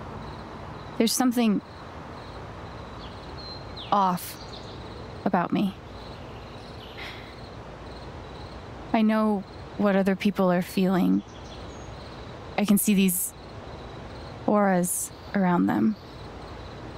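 A young woman speaks slowly and hesitantly, close by.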